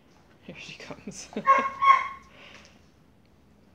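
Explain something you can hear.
A puppy yelps and whines in short high cries.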